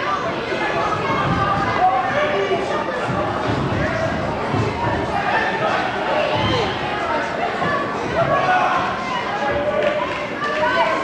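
A crowd cheers and shouts loudly in an echoing hall.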